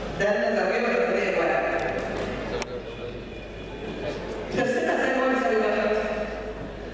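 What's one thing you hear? An older woman speaks calmly through a handheld microphone.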